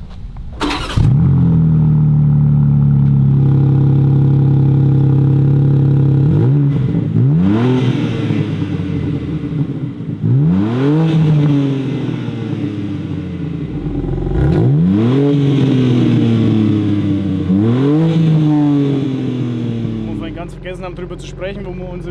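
A car engine starts and idles with a deep rumble.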